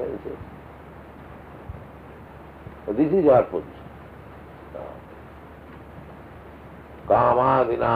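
An elderly man speaks calmly, in short phrases with pauses.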